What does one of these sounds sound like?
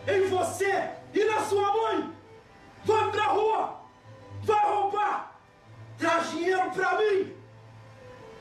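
A woman speaks loudly in short bursts, close by.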